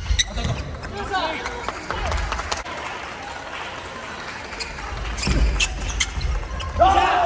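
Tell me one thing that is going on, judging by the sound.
Young men shout and call out during play.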